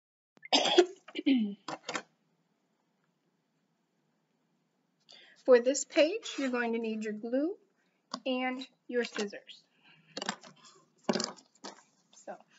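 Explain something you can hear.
A woman speaks clearly and slowly, close to a microphone, as if teaching.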